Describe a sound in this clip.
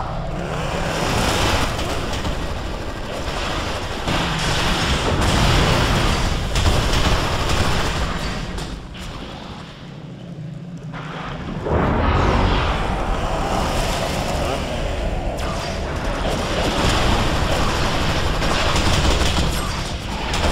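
Energy weapons zap and blast rapidly in a noisy fight.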